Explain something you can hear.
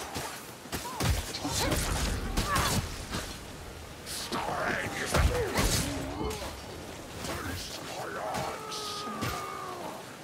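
Blades slash and strike with sharp metallic hits.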